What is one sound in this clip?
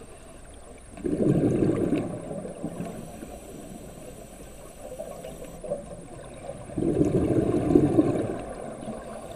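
A scuba diver exhales through a regulator underwater, releasing rushing bubbles.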